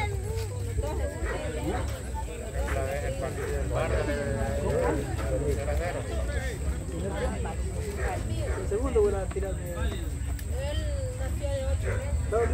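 Men call out to each other across an open field outdoors.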